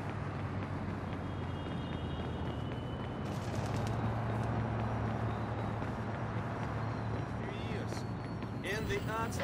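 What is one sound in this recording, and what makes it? City traffic hums steadily in the background.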